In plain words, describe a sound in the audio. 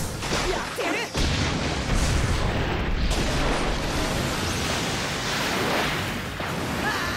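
Water crashes and rushes in a roaring surge.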